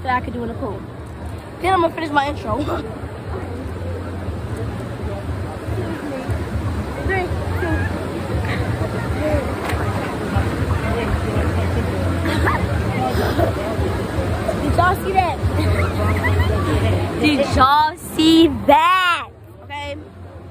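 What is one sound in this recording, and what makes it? A girl talks and laughs close by.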